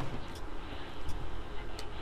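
A clock ticks steadily.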